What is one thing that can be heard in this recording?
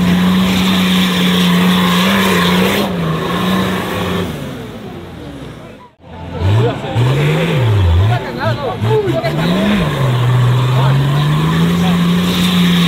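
A truck engine roars and revs hard close by.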